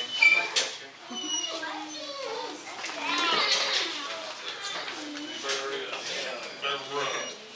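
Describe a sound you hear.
Several men and women chatter nearby in a room.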